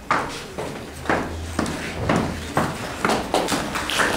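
Footsteps tap across a wooden floor.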